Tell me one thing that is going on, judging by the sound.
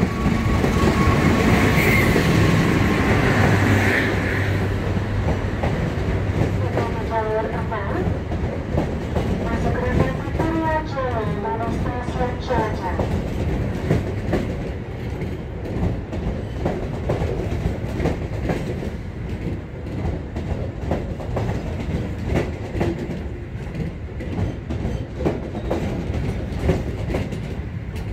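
Passenger coach wheels clatter over rail joints.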